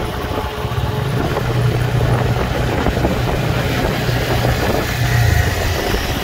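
Another motorcycle engine runs close alongside.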